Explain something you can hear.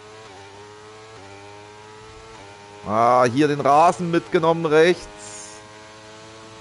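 A racing car engine whines steadily, dropping in pitch briefly with each gear shift.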